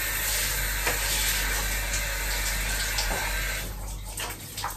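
Shower water sprays steadily, then stops.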